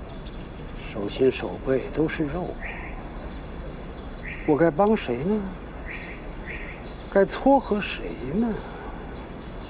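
An elderly man speaks slowly and haltingly, close by, with long pauses.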